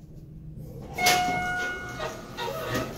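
An elevator chime dings.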